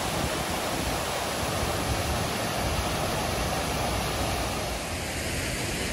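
Water rushes steadily down a fountain's cascades.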